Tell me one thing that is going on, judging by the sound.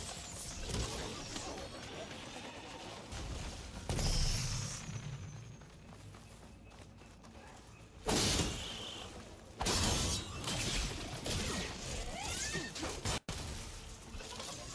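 Footsteps run and rustle through dense undergrowth.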